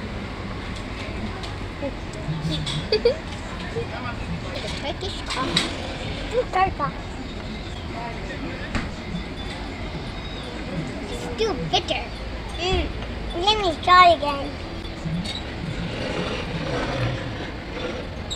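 Young girls talk and laugh close by.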